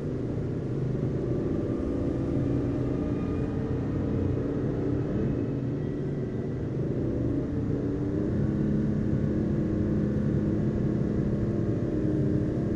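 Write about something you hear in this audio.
A car engine hums steadily as the car drives along a road.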